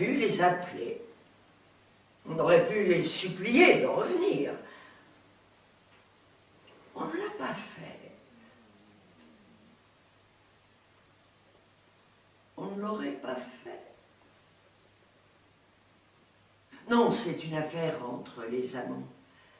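An elderly woman speaks calmly and thoughtfully, with long pauses.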